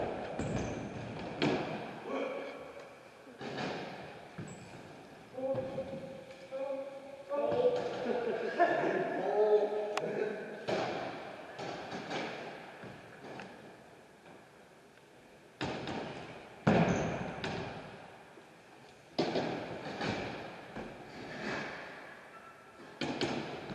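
BMX tyres roll across a concrete floor.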